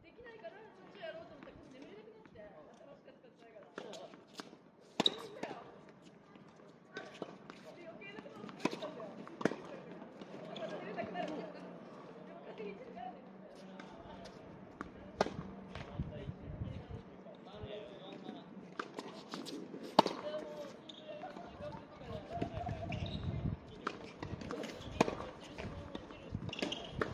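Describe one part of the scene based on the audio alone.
Tennis rackets strike a ball with sharp pops, outdoors.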